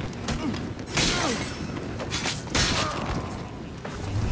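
A sword slashes and strikes a soldier.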